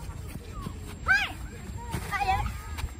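Young children shout and call out excitedly.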